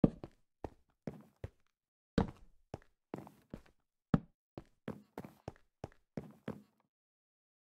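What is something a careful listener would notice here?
Footsteps thud on hard blocks in a quick rhythm.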